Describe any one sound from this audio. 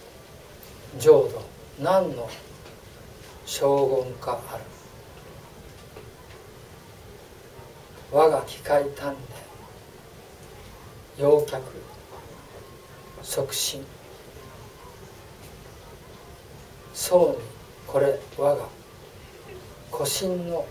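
An elderly man speaks calmly in short phrases with pauses, close by.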